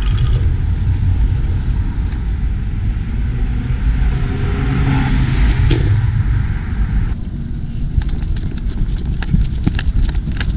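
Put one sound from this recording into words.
Wind rumbles and buffets loudly against the microphone outdoors.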